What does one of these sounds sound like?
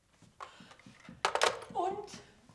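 A telephone handset clatters down onto its cradle.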